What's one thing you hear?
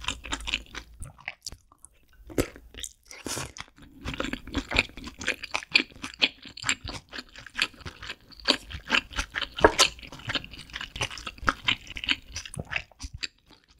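Chopsticks click against a dish.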